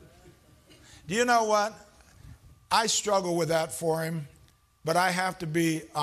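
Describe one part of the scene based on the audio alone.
An elderly man preaches loudly and with animation through a microphone in a large echoing hall.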